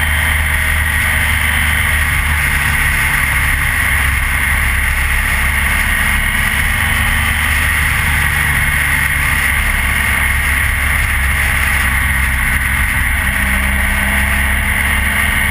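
A motorcycle engine hums steadily at speed up close.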